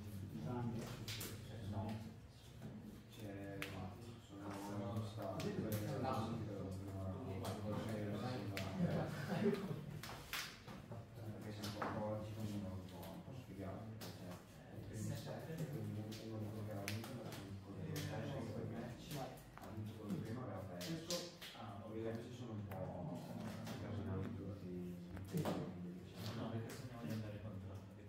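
Playing cards rustle and tap as they are handled and laid down.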